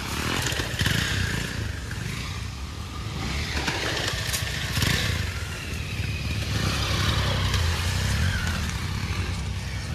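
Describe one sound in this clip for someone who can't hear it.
Motorcycle engines rumble and rev nearby.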